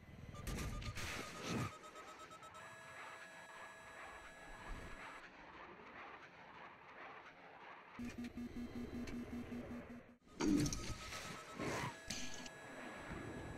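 A warning tone beeps in a fast repeating pattern.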